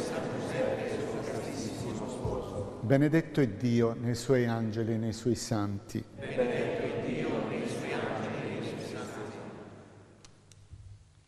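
A man sings a slow chant that echoes through a large hall.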